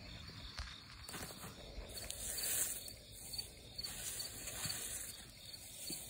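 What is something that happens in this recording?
Leafy branches rustle as they are brushed aside.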